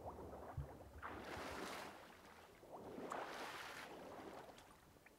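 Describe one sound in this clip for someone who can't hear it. Water splashes as a swimmer surfaces and climbs out.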